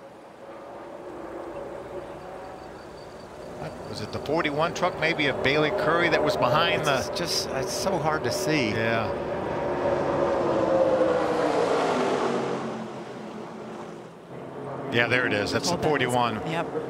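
Many race car engines roar together as a pack speeds past.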